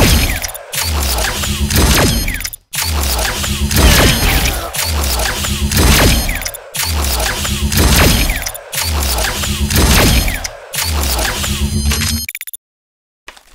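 A ray gun fires loud buzzing blasts in bursts.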